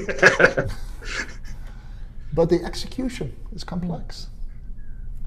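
Men laugh heartily over an online call.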